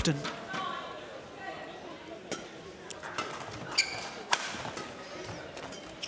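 A shuttlecock is struck sharply back and forth with rackets.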